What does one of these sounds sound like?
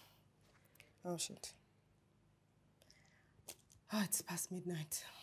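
A woman speaks softly and closely.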